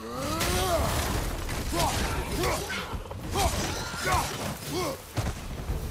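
A heavy axe strikes with a dull thud.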